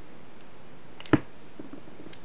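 A plastic cup knocks sharply once.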